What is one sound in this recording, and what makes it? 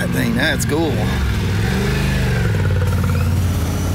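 A motorcycle engine rumbles nearby and pulls away.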